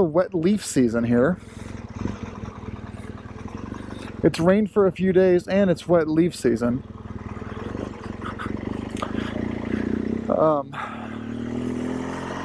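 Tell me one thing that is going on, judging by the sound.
A motorcycle engine hums steadily at low speed.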